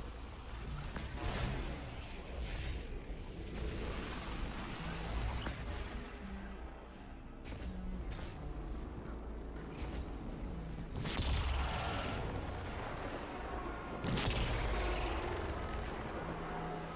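Air rushes past in loud whooshes.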